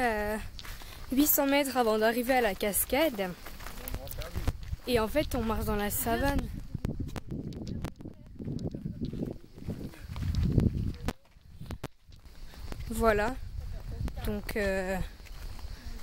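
A young woman talks close by, in a lively way.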